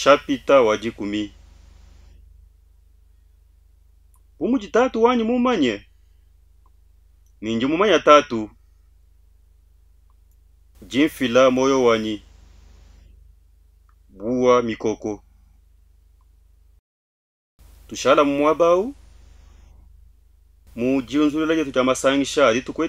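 A man speaks slowly and solemnly into a close microphone, pausing between phrases.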